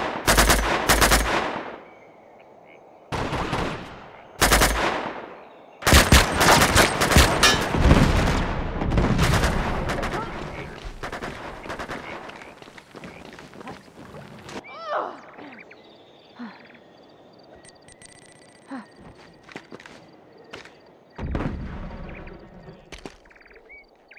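Gunfire rattles in loud, sharp bursts.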